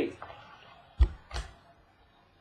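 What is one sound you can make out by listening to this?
A card in a hard plastic case taps down on a wooden table.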